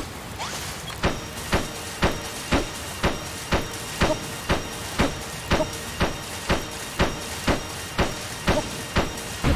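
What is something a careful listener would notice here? A game character places blocks with quick, regular thuds.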